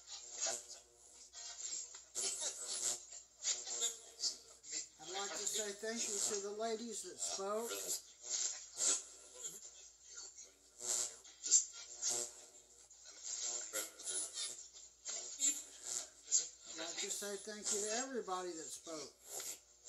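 Short bursts of static and garbled sound play from a small loudspeaker.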